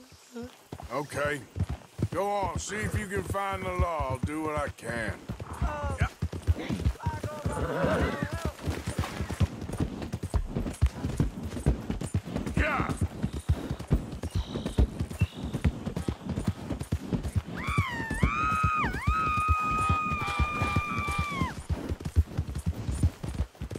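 Horse hooves thud steadily on the ground.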